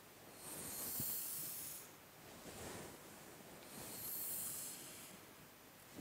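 A pencil scratches across paper.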